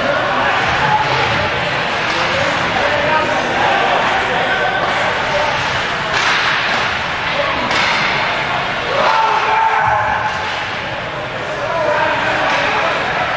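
A crowd cheers and shouts in an echoing arena.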